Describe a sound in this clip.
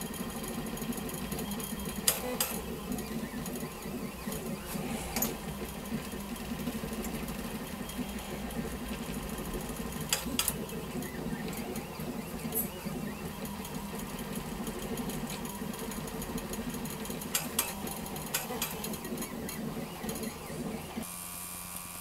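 A 3D printer's motors whir and buzz steadily.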